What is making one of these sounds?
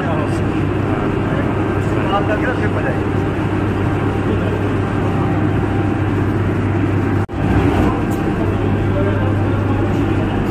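A loud machine hums steadily in an echoing room.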